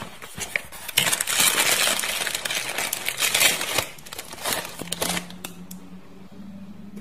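A plastic bag crinkles loudly as it is handled.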